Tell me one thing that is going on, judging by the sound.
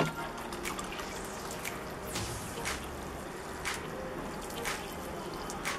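Water pours from a watering can and splashes softly onto soil.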